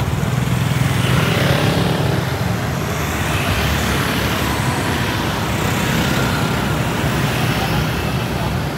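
A scooter engine hums as it passes close by.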